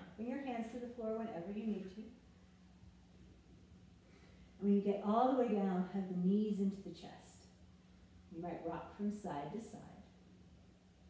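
A young woman talks calmly and clearly, close by.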